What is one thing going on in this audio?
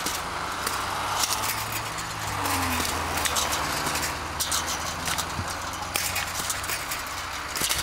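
A road flare hisses and crackles.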